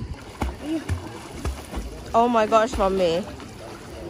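A man splashes water loudly while swimming.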